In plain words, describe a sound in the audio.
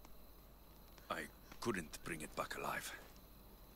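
A man answers in a low, calm voice.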